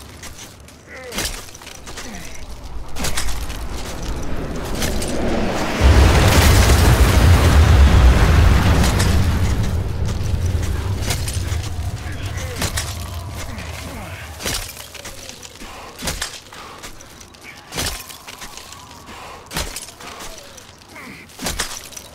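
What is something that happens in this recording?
Ice axes strike and bite into hard ice.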